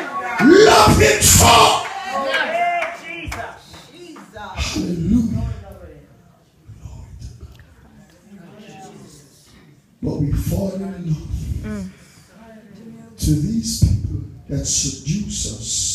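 A man preaches forcefully into a microphone, his voice booming through loudspeakers in an echoing hall.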